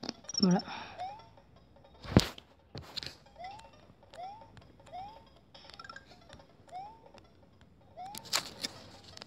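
Short rising chirps from a video game play again and again.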